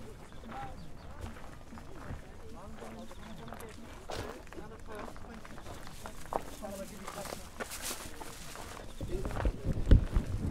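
Adults chat nearby in an open-air crowd.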